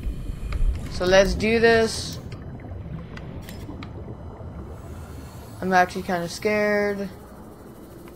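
A young woman talks with animation through a close microphone.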